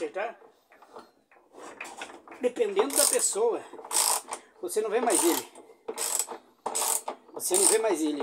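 A wrench clinks against metal parts.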